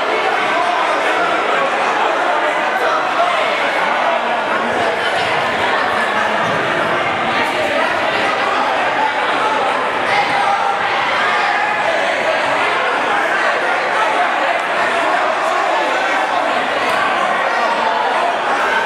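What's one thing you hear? Young men talk among themselves nearby in an echoing hall.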